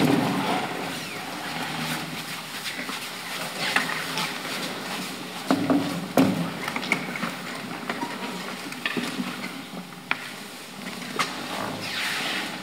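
Footsteps shuffle across a stage.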